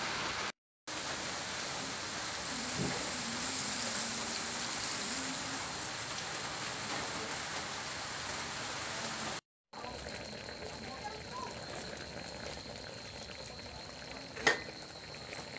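Food sizzles and bubbles in a pan.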